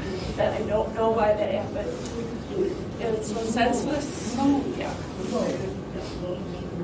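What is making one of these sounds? A woman speaks in a choked, tearful voice close by.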